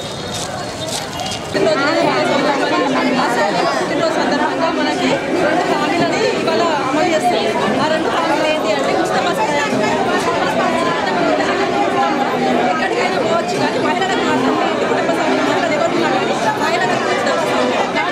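A crowd of women chatters in the background.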